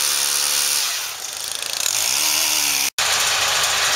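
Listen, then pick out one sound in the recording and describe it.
A pole saw motor whines while cutting a branch.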